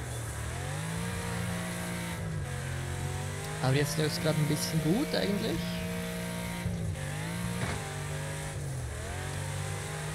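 Tyres skid and crunch on loose dirt.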